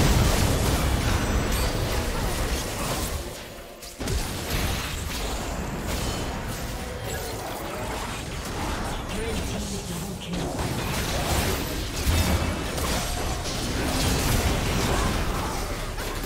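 Magic blasts and clashing hits crackle in a hectic fight.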